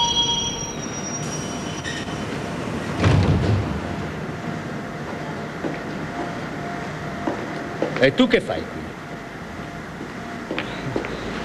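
A train hums while standing at an underground platform.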